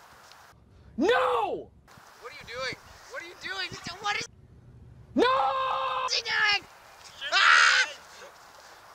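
A man shouts with strained, rising cries.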